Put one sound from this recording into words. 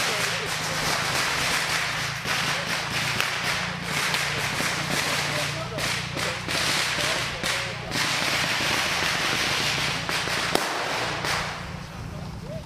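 Footsteps crunch quickly through dry leaves.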